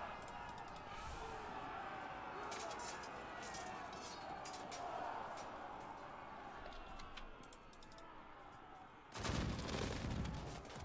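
Muskets fire in scattered cracks amid the noise of battle.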